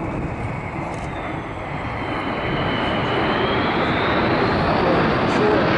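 A jet engine whines as an aircraft passes close overhead.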